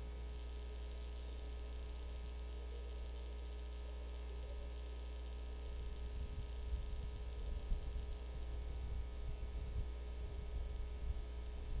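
Metal cups clink softly as they are handled.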